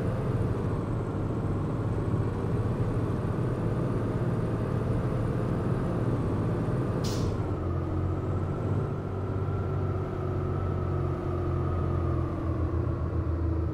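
A diesel articulated city bus engine drones as the bus drives along a street.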